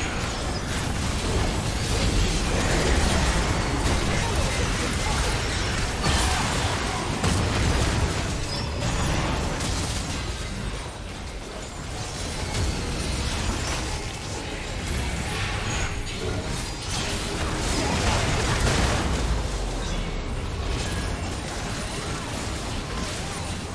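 Spell effects and weapon strikes clash and burst in a fast battle.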